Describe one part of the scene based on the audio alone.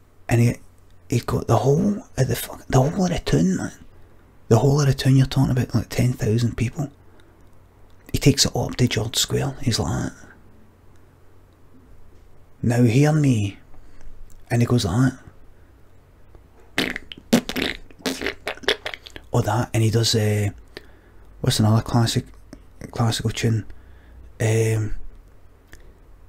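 A man talks with animation into a close microphone, pausing often.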